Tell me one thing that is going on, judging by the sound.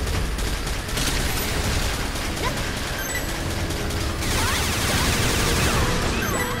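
Heavy explosions rumble.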